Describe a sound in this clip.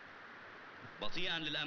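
A man speaks up clearly and close by.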